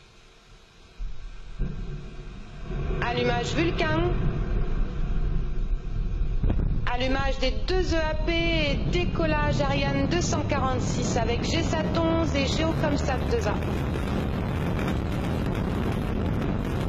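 A rocket engine ignites and roars with a deep, steady rumble.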